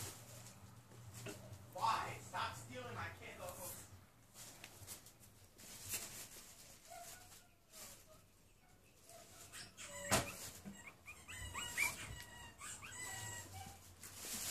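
A dog shuffles about, rustling and scraping on cardboard.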